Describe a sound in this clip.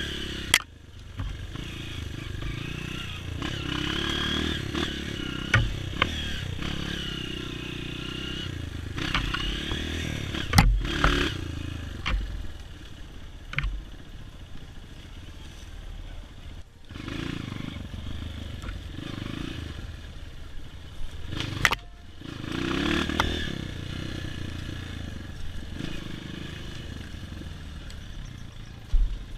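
A dirt bike engine revs and sputters up and down.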